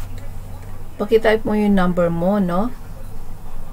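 A woman speaks into a webcam microphone.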